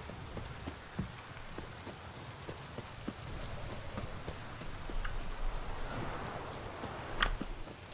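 Footsteps thud steadily on grass at a running pace.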